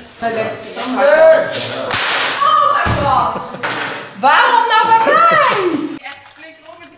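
A young woman laughs and talks close by.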